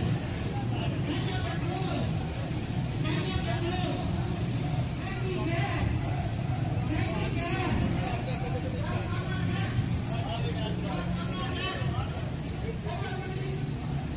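A crowd of men talks and murmurs nearby, outdoors on a busy street.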